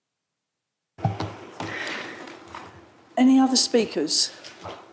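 An older woman speaks through a microphone.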